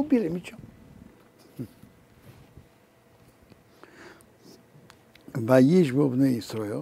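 An elderly man speaks calmly and slowly, close to a microphone, with long pauses.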